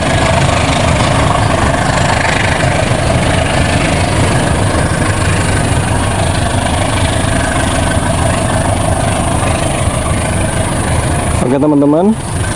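A train rumbles along the tracks and slowly moves away.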